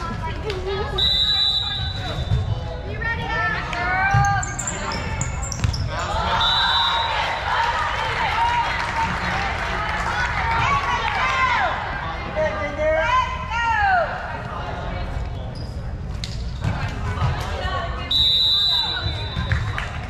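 A referee's whistle blows short, shrill blasts.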